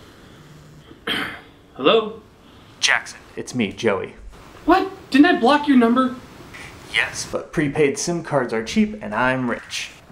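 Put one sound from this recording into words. A young man talks with animation on a phone, close by.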